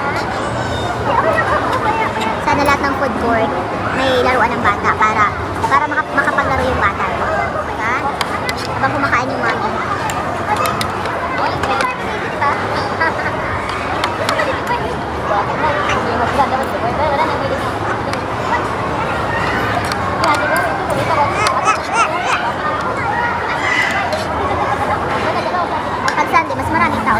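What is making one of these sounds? A crowd murmurs in a large, echoing hall.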